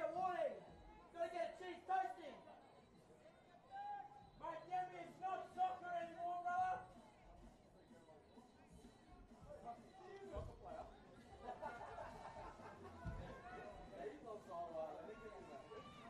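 Rugby players call out to each other on an open field.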